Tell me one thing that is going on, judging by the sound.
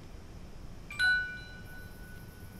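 A phone chimes once.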